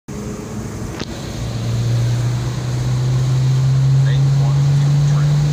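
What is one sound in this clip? A car engine hums steadily, rising slightly in pitch.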